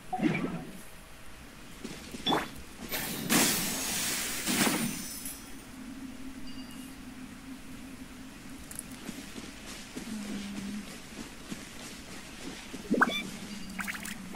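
Soft footsteps pad through grass.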